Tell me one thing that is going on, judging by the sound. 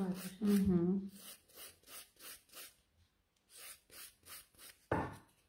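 A nail file scrapes back and forth across a fingernail in quick, even strokes.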